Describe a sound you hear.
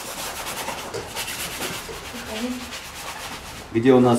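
A brush dabs and swishes paint on a palette.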